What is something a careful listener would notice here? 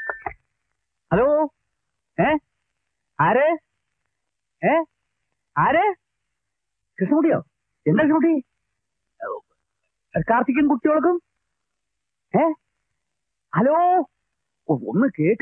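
An elderly man talks on a telephone in short, emphatic bursts.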